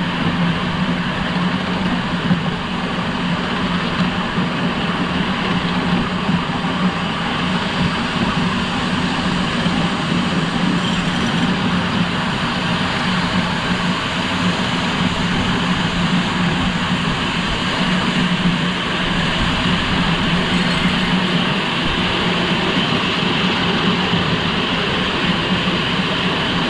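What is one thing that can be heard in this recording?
Wheels rattle and clack over rail joints.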